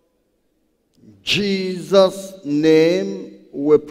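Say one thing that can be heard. A man speaks loudly through a loudspeaker in an echoing hall.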